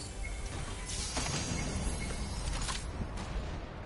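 A treasure chest opens with a shimmering chime.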